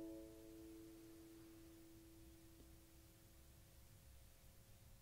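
A banjo's last chord rings out and slowly fades away.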